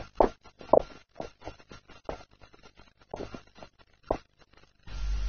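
Horses gallop, hooves thudding on dry ground.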